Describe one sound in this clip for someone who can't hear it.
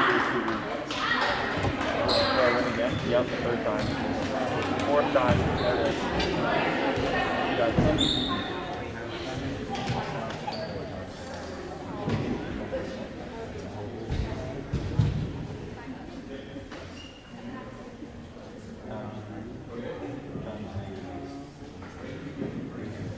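Young women chatter and call out across the echoing gym.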